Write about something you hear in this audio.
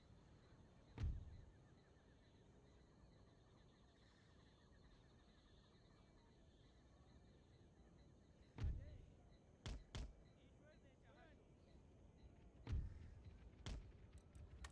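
Cannons boom heavily now and then.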